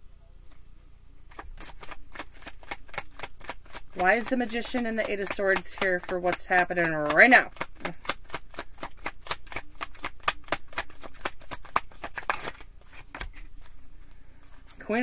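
Cards riffle and flutter as they are shuffled.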